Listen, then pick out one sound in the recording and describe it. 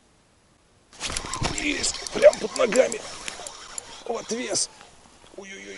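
A fishing reel clicks and whirs as its handle is turned.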